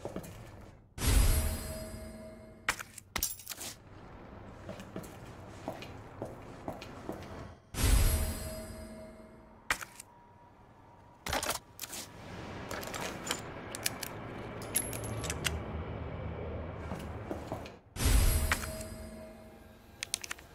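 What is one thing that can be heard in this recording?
A bright chime rings out with a low boom as an item is picked up, then fades.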